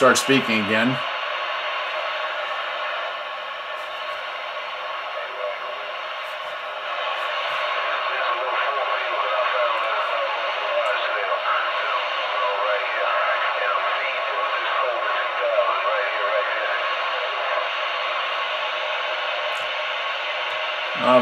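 Radio static and a faint voice hiss from a small CB radio speaker.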